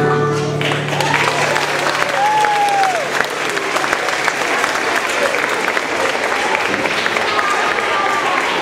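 A choir of young children sings together in a large echoing hall.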